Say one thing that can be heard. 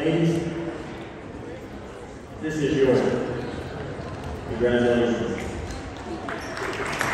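An elderly man speaks into a microphone over loudspeakers in a large echoing gym.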